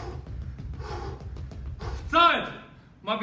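A man's feet thump on a padded floor as he jumps.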